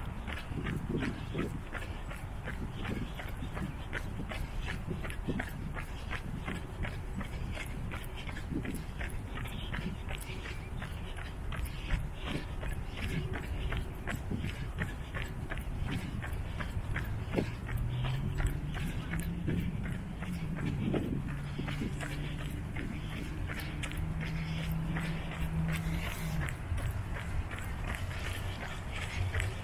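Bicycle tyres hum on a wet paved path.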